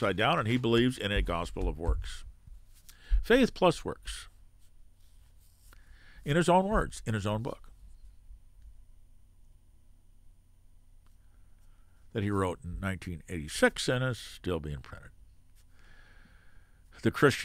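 An elderly man speaks calmly and thoughtfully into a close microphone, with long pauses.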